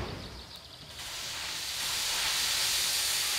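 Fireworks hiss and fizz.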